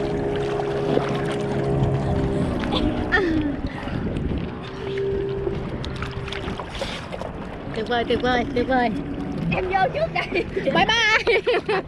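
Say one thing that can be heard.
A woman laughs and talks close by.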